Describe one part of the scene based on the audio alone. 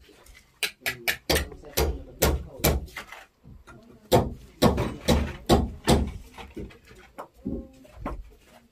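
A trowel taps and scrapes against concrete blocks in sharp, quick knocks.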